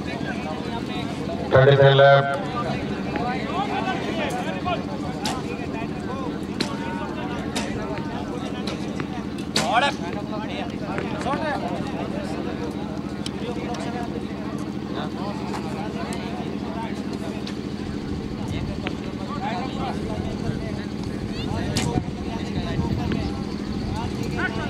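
A crowd of men and women murmurs and chats outdoors.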